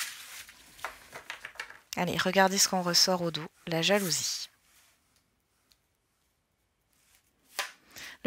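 Cards rustle and slide as they are handled.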